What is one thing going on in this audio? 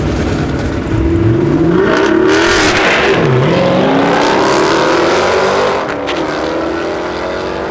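A car engine roars loudly as the car launches and speeds away.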